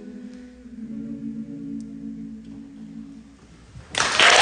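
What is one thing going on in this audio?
A young woman sings a steady note.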